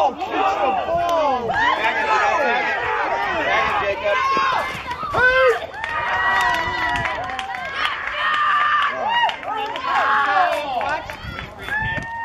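Young girls and adults shout and cheer excitedly outdoors.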